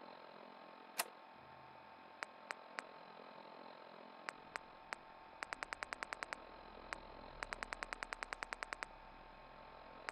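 Menu selections tick in quick rapid bursts.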